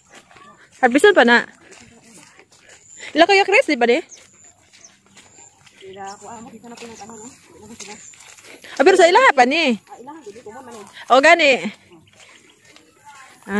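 Bare feet step softly along a wet dirt path.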